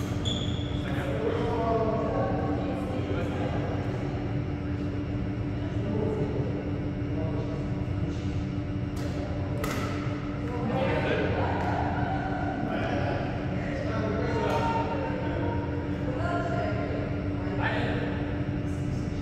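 Adult players talk to each other across the court.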